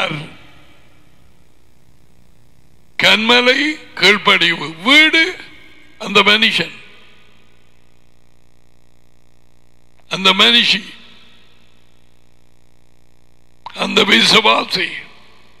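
A man speaks with animation in short bursts through a headset microphone, with pauses between.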